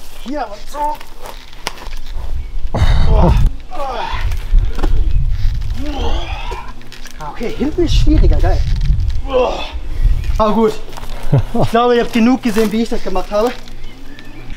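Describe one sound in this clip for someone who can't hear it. Footsteps crunch on dry leaves and twigs.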